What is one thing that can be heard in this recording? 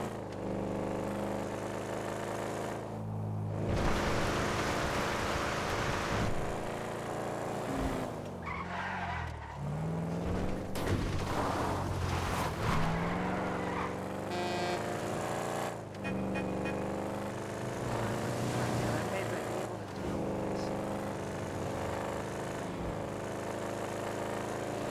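A car engine roars and revs up and down as the car speeds along.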